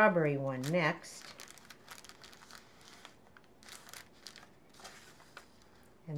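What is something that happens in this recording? Paper rustles softly as hands press it flat.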